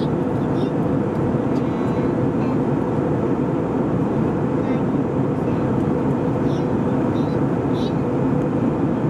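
A jet engine roars steadily inside an airplane cabin.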